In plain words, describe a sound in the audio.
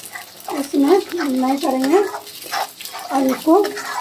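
A spatula scrapes and stirs inside a metal pan.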